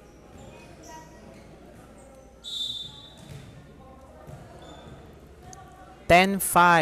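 Spectators murmur faintly in a large echoing hall.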